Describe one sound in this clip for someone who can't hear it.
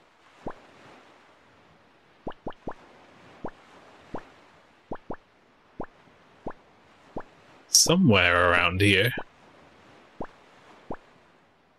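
Short soft blips tick again and again as a game's map cursor moves from square to square.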